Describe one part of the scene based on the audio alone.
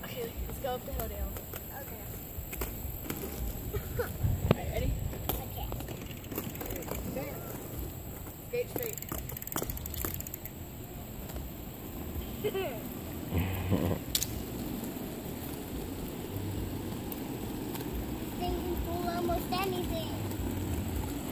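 Roller skate wheels rumble and rattle over rough pavement.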